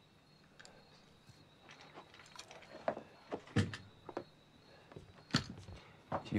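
A rifle's metal parts click and knock as the rifle is handled.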